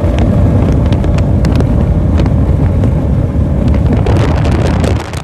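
Water sprays and hisses behind a speeding boat.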